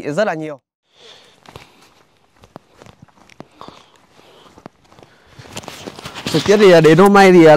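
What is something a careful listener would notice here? Footsteps crunch on a dirt path.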